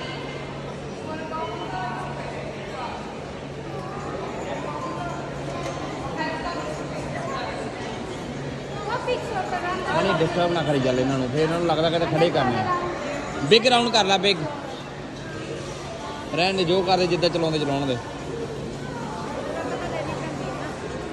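Murmuring voices echo through a large indoor hall.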